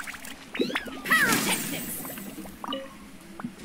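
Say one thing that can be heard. A fiery blast roars from a video game.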